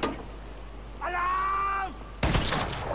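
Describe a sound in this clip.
A man shouts an alarm loudly.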